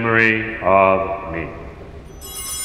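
A man chants in a loud, echoing voice.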